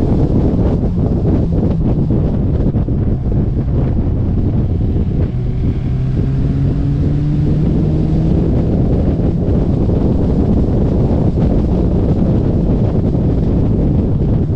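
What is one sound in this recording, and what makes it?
A car engine roars loudly at speed.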